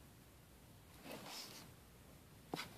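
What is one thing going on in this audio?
A book's pages rustle as it is moved.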